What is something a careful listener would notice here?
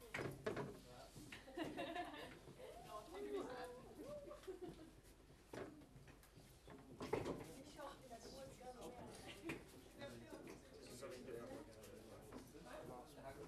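Sticky notes are pressed and tapped against a whiteboard.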